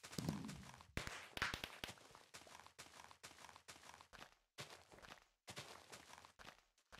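Game blocks break with repeated crunching digging sounds.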